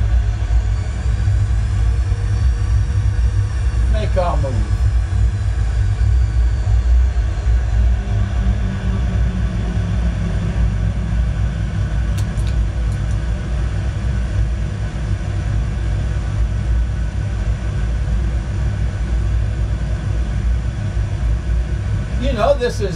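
Jet engines rumble steadily with a deep roar.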